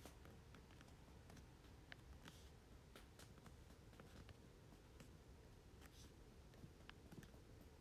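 Fabric rustles close by.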